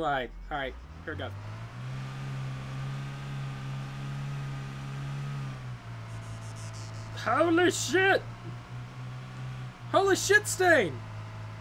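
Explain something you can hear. A car engine hums steadily.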